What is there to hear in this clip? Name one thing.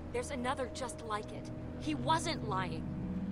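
A teenage girl speaks angrily.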